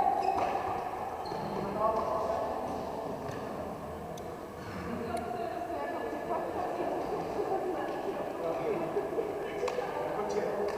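Young players call out to each other as they run between bases.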